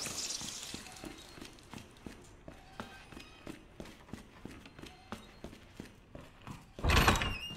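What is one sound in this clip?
Footsteps walk on a hard floor.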